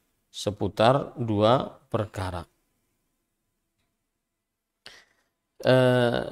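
A man recites in a melodic, chanting voice close to a microphone.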